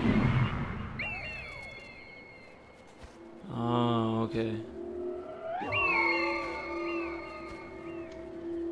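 An eagle screeches loudly.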